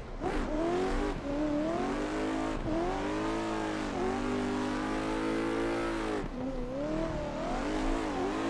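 A car engine revs high and wavers.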